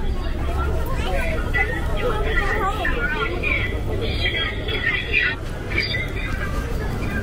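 Several people chatter in the street around.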